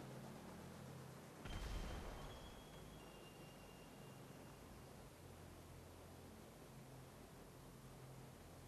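Wind rushes steadily past a vehicle.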